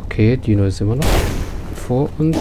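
A fireball explodes with a loud boom.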